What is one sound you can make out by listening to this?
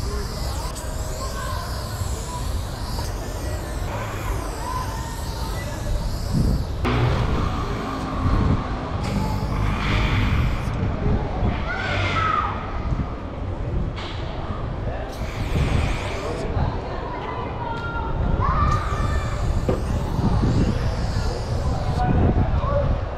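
A spray can hisses in short and long bursts.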